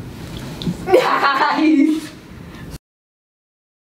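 A girl laughs.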